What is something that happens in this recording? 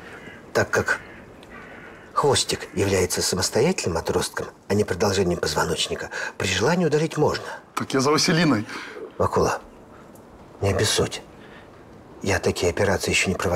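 An older man speaks calmly nearby.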